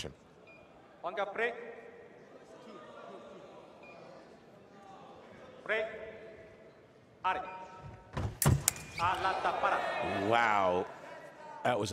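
A young man shouts loudly with excitement.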